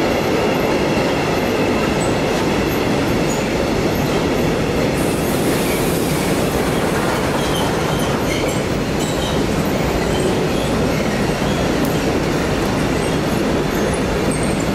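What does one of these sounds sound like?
Train wheels clack and squeal on the tracks.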